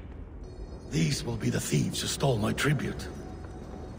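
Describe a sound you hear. A second man speaks in a low, hushed voice.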